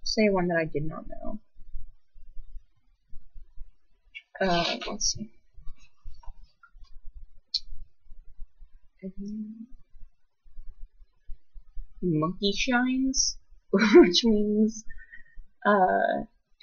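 A young woman speaks calmly and close to the microphone, in short bursts.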